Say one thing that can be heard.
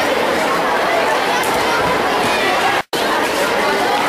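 Young girls talk excitedly close by.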